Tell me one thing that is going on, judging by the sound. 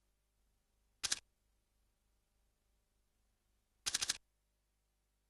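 A game menu gives short electronic chimes.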